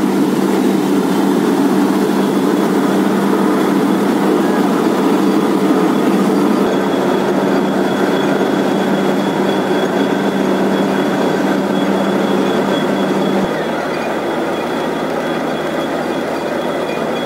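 A diesel borewell drilling rig runs with a steady drone.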